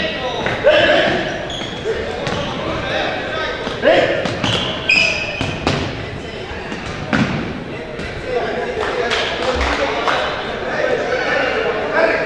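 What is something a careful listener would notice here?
A ball thumps against the floor.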